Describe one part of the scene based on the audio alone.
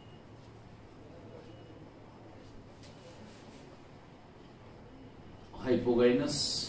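A middle-aged man speaks calmly, as if explaining something.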